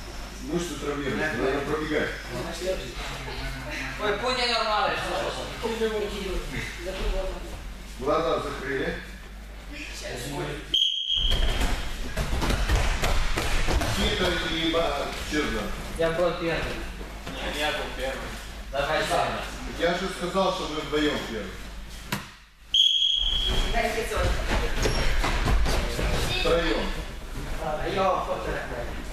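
Several young people talk and call out in a large echoing hall.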